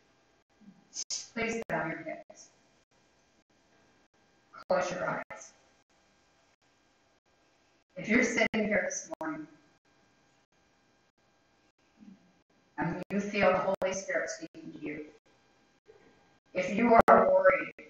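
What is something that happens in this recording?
An older woman reads aloud calmly into a microphone, with pauses between phrases.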